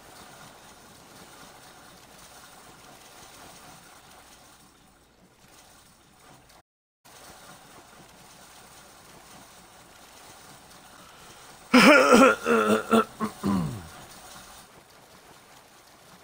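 A swimmer splashes through water with steady strokes.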